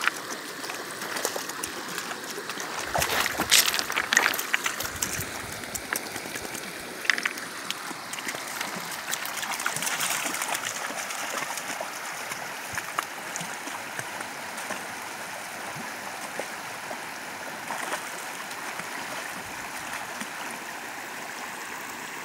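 Dogs splash through shallow water.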